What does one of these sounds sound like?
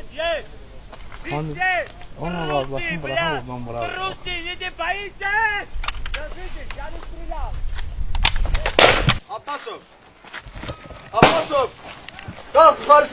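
Men shout loudly and urgently outdoors.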